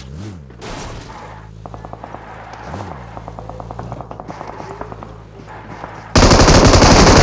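An off-road vehicle's engine runs in a video game.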